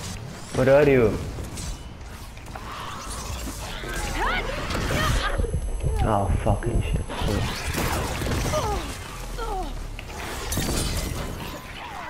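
A machine creature roars and screeches.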